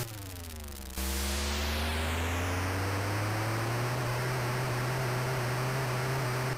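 Tyres screech in a long, hissing skid.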